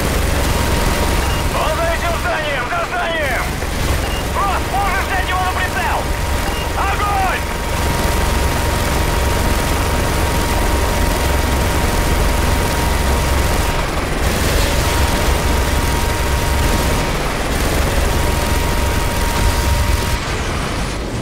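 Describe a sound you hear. A heavy machine gun fires in long, rapid rattling bursts.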